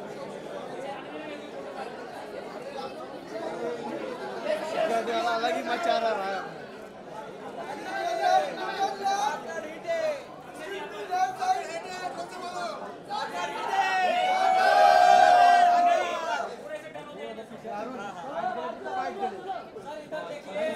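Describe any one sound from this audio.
A crowd of men and women chatter and call out loudly all around.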